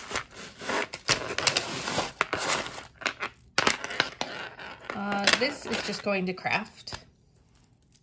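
Beads and a metal chain clink and rattle as they are handled.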